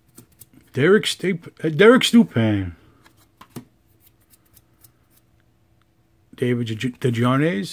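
Trading cards rustle and slide softly against each other.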